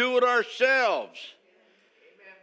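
An elderly man speaks emphatically through a microphone in an echoing hall.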